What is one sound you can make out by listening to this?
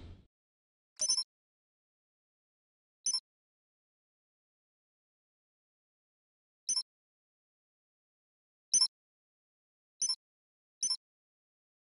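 A short electronic beep sounds at irregular moments.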